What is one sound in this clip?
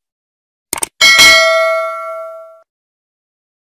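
A small bell rings brightly and fades.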